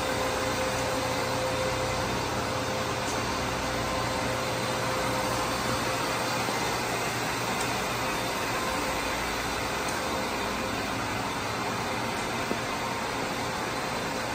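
Machinery hums steadily.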